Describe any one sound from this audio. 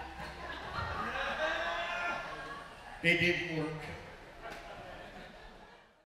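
A man speaks into a microphone over loudspeakers in an echoing hall.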